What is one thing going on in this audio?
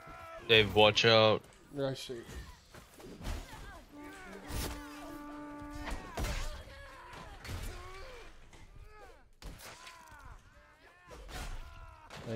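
Swords clash and strike with sharp metallic blows.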